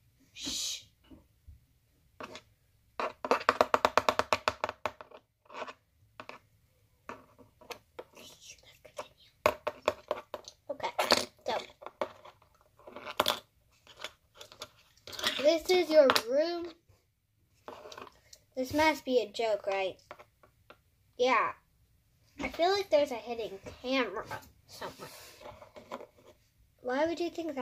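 Plastic toy figures click and tap on a table.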